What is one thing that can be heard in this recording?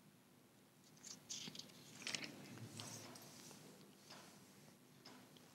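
Book pages rustle softly as they are turned.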